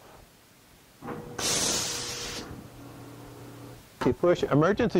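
A machine starts with a burst of hissing air and a low hum, then stops.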